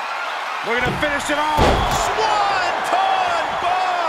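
A body lands on a wrestling ring mat with a heavy thud.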